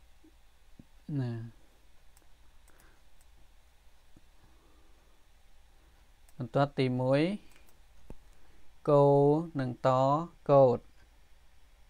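A man speaks slowly and calmly through a microphone, pausing between words.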